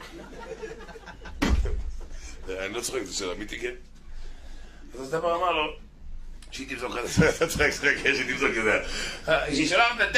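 A middle-aged man laughs into a microphone.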